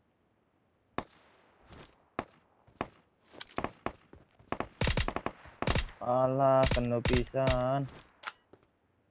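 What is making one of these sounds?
Gunshots from a scoped rifle crack.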